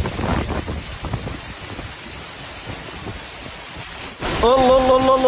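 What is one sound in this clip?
Rain pours down outdoors.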